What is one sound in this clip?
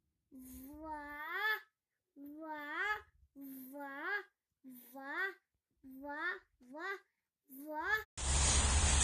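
A toddler babbles in a high voice close by.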